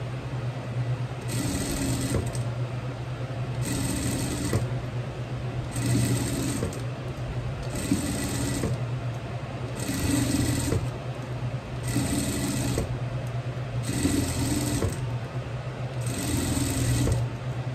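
A sewing machine hums and stitches in short, regular bursts.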